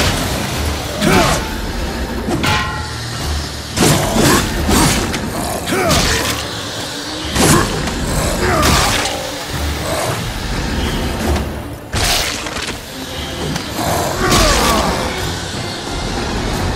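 Magic blasts burst with crackling whooshes.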